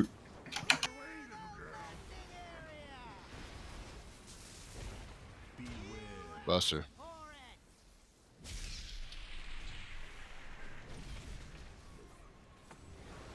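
Magical blasts and impacts burst during a fantasy battle.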